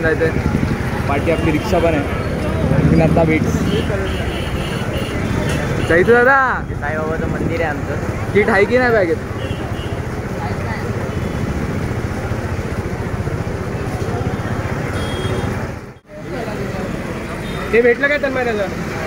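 Drums beat loudly in a street procession.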